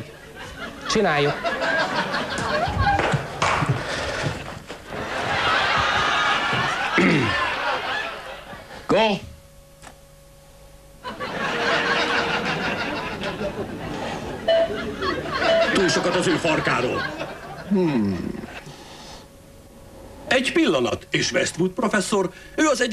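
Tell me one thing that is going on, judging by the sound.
A middle-aged man speaks close into a microphone, reading out.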